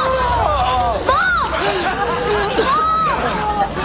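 A man laughs wildly.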